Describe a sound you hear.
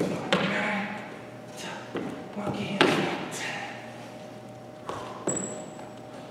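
Sneakers scuff and thud on a wooden floor in an echoing hall.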